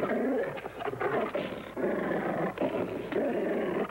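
Bears growl and snarl loudly as they fight.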